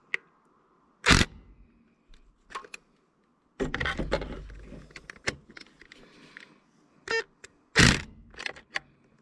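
An impact wrench rattles in short bursts.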